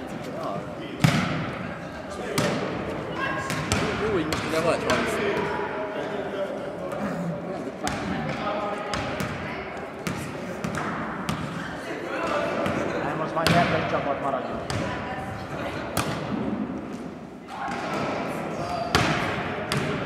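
A volleyball is hit with sharp slaps that echo in a large hall.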